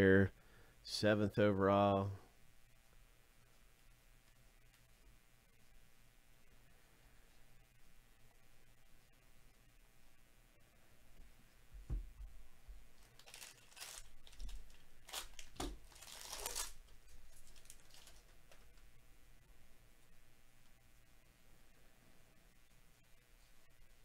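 Trading cards slide and flick against each other in hands.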